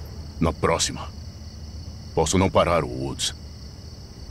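A man speaks in a low, tense voice, close by.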